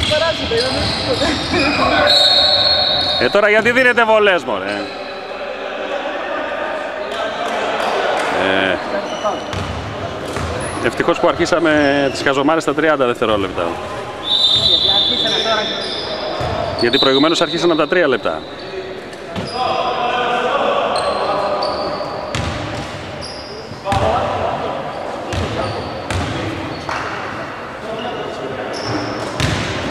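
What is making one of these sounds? Men shout and call out in a large echoing gym.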